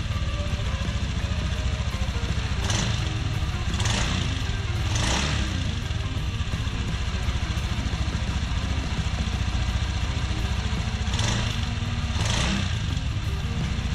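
A motorcycle engine idles with a steady, fast chugging exhaust.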